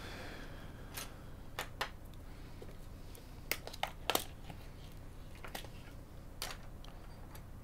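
A plastic parts tray clatters down on a hard surface.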